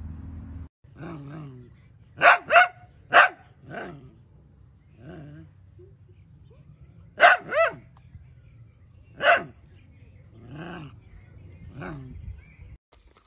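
A small dog whines.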